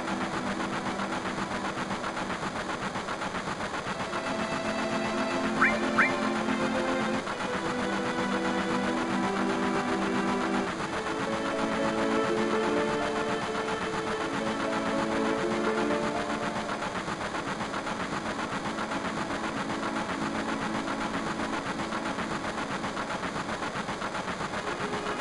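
Soft, gentle music with steady, sustained notes plays throughout.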